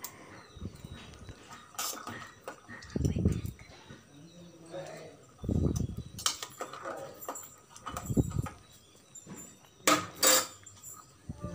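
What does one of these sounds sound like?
A metal spoon scrapes and clinks against a metal strainer.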